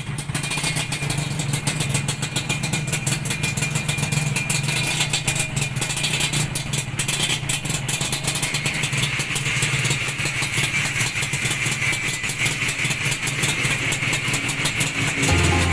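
A motorcycle engine idles with a rapid, steady putter.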